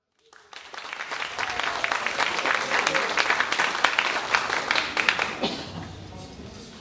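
An audience claps and applauds in a large echoing hall.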